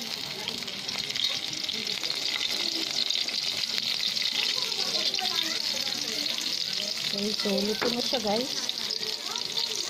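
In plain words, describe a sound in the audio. Oil sizzles steadily as food fries in a pan.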